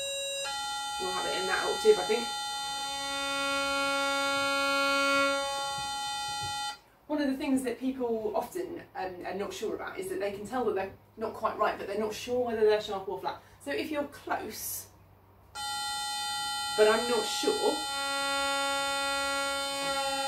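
A woman bows long notes on a low string instrument.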